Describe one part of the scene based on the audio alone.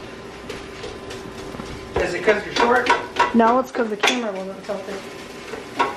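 A spoon scrapes and stirs in a pan.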